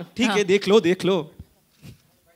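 A woman speaks with animation through a microphone.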